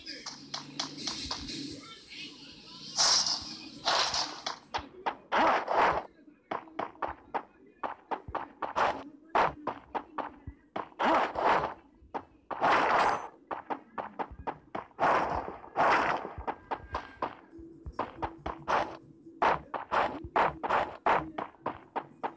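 Footsteps thud quickly on wooden floors and grass.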